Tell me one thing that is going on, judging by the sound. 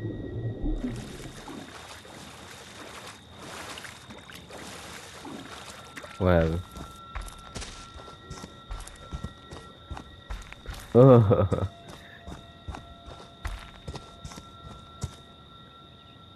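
Heavy footsteps crunch over dry leaves and brush.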